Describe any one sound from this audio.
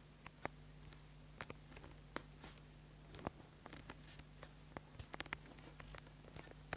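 Short, soft clicks sound one after another as blocks are placed.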